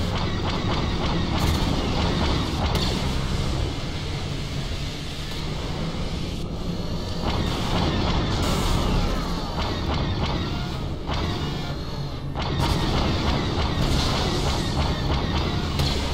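Blaster shots fire rapidly.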